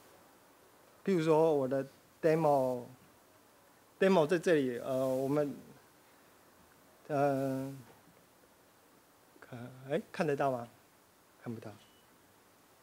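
A man speaks calmly in short bursts through a microphone, heard over a loudspeaker in a hall.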